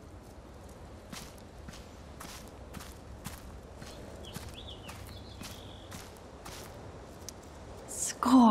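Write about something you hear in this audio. Footsteps tap softly on grass.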